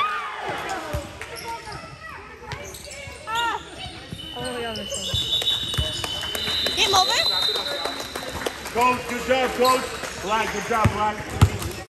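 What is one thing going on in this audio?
Spectators cheer and shout with excitement in an echoing gym.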